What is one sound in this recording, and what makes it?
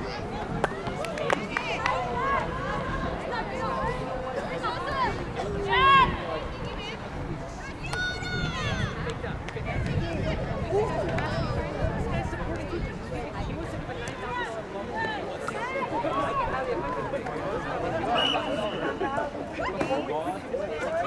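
Young women shout to each other across an open field in the distance.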